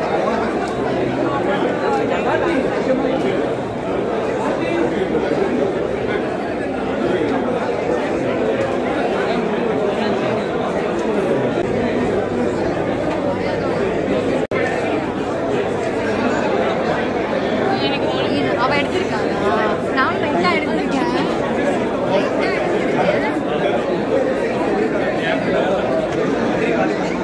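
A crowd of people chatters loudly all around, close by.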